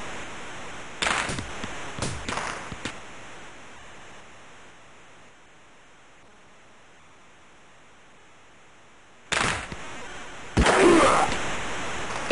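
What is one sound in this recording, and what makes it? A hockey stick slaps the puck with sharp clacks.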